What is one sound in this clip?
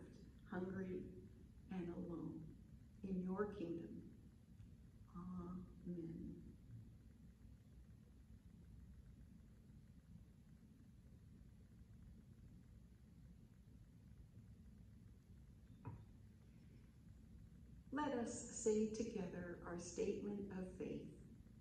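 An elderly woman speaks slowly and clearly into a microphone, with long pauses.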